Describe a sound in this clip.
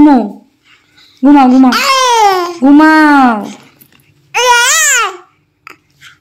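A baby cries loudly close by in long wailing bursts.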